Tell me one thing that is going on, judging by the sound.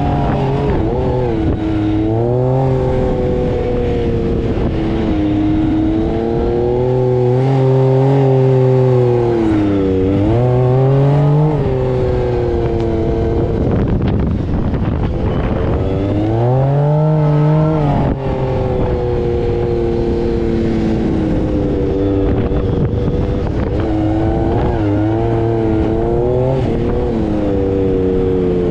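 An engine revs up and down loudly, close by.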